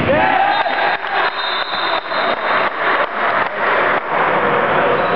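A man claps his hands in a large echoing hall.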